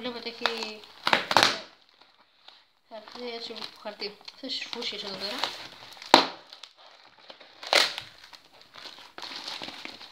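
Bubbles in plastic wrap pop sharply.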